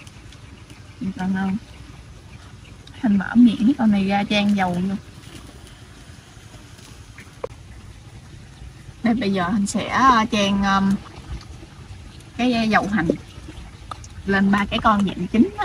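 A young woman talks calmly close by, in short bursts.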